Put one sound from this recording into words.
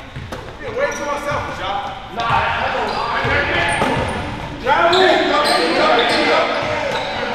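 Men shout and call out to each other in a large echoing gym.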